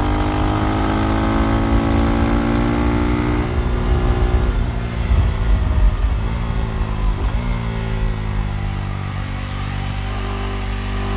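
Wind rushes loudly past the rider.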